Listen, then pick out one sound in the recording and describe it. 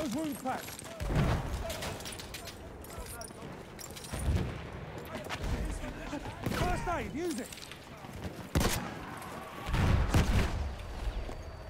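Gunshots crack out loudly, one at a time.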